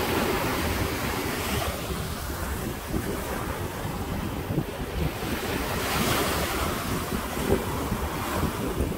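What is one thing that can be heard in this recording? Small waves wash and break against rocks on a shore.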